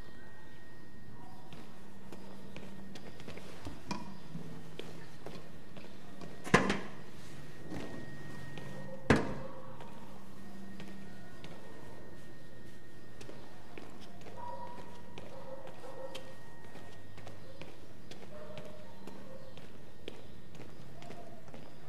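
Footsteps scuff on a hard floor.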